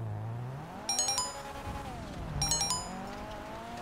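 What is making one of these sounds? A phone message alert chimes twice.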